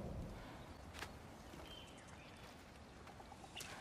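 A large animal's hooves thud slowly on dirt.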